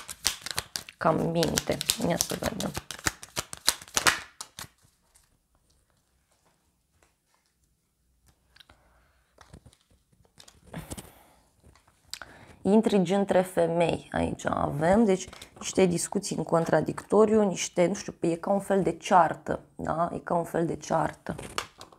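A young woman speaks clearly and closely, as if into a microphone.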